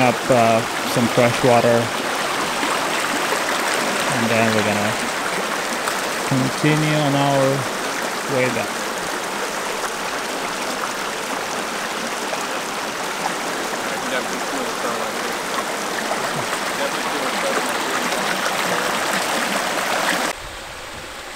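A shallow stream gurgles and rushes over rocks close by.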